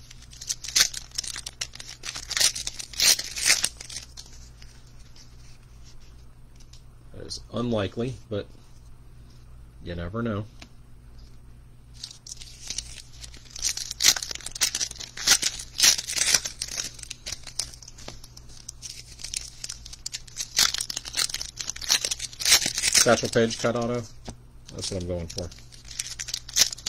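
Foil wrappers crinkle as they are handled.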